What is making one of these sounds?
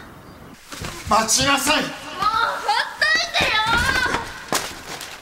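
A young woman shouts in distress.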